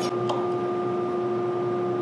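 A chisel scrapes and taps on wood.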